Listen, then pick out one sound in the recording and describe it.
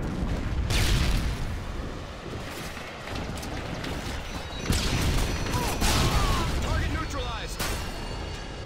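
Explosions boom loudly, one after another.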